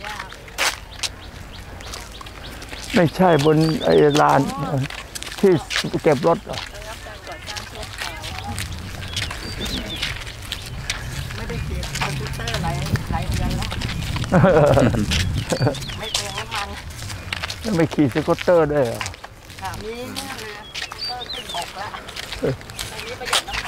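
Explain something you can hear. Footsteps scuff on a hard path.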